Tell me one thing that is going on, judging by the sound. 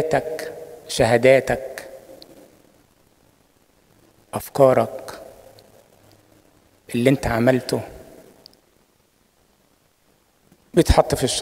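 An elderly man preaches through a microphone in bursts, his voice echoing in a large hall.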